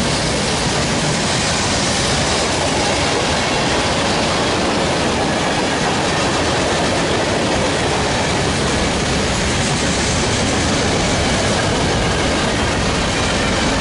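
A long freight train rumbles and clatters steadily along the tracks nearby.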